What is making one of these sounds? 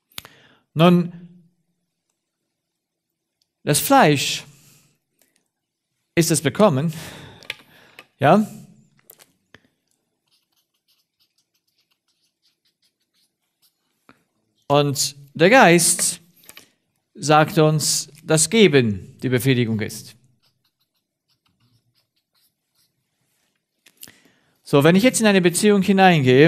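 A man speaks in short bursts with long pauses, close by.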